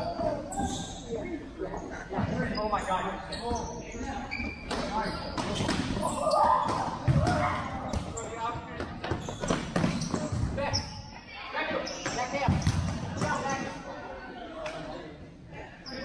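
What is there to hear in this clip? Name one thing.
Young players call out to each other in a large echoing hall.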